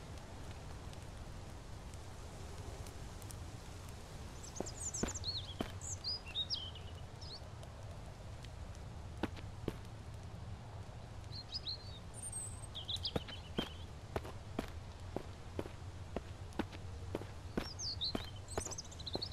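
Footsteps crunch on dry leaves and dirt.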